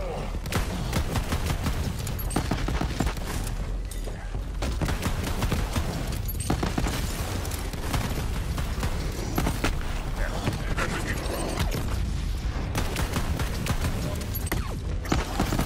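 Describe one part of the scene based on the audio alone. Rapid gunfire crackles and thuds.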